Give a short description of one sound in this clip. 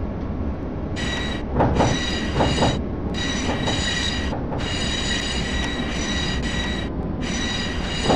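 A tram's electric motor whines with a high, steady tone.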